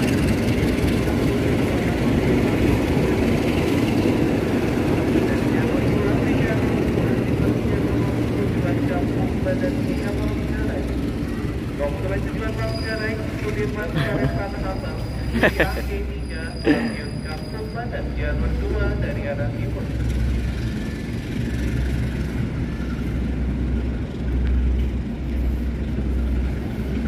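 A train rolls along rails, heard from on board.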